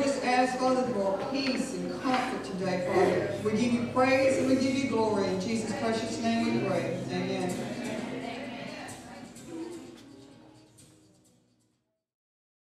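A middle-aged woman sings through a microphone.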